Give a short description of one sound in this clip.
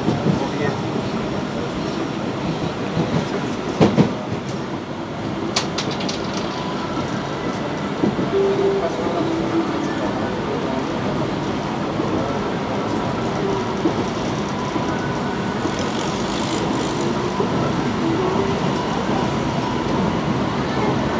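A vehicle drives steadily along a road, its engine and tyres rumbling.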